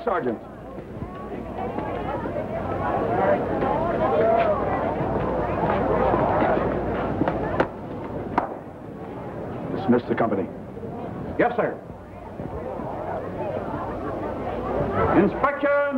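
A crowd murmurs and cheers in the background.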